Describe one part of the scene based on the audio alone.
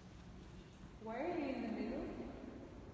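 A woman sings a loud, sliding tone in a large echoing hall.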